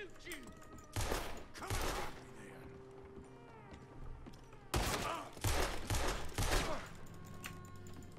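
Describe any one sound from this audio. Gunshots bang loudly several times indoors.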